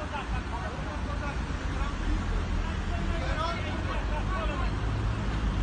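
Car engines idle nearby.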